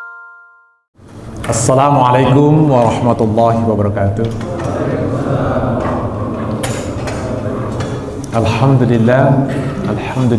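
A man speaks calmly into a microphone in a reverberant room.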